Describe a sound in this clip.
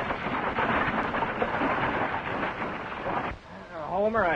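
Wagon wheels rattle and rumble over dirt.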